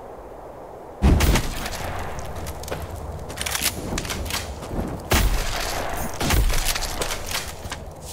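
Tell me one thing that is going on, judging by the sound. Weapon blows thud against creatures.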